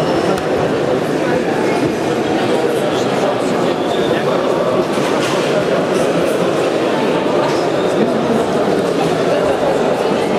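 A group of young men chatter and cheer in a large echoing hall.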